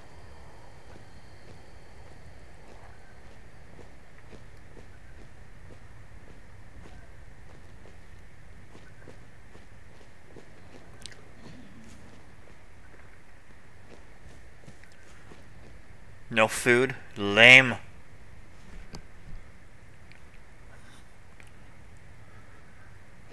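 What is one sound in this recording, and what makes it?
Footsteps thud softly on a floor.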